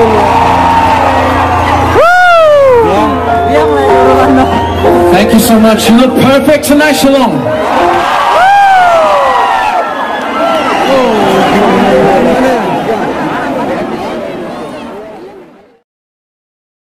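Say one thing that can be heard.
A crowd cheers and screams loudly nearby.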